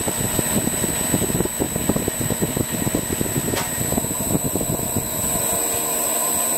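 A lathe spins with a rough, rattling rumble and then winds down.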